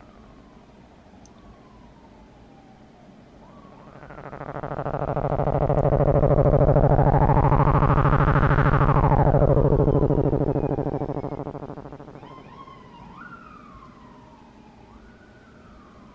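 A synthesizer plays gliding electronic tones that shift in pitch as knobs are turned.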